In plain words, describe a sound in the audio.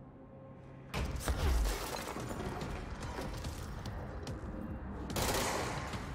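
A pistol fires shots.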